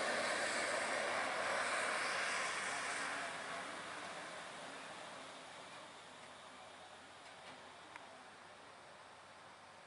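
A heavy truck rumbles past along a road and fades into the distance.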